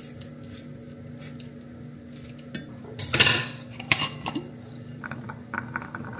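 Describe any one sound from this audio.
Chopped vegetables drop into a metal pan.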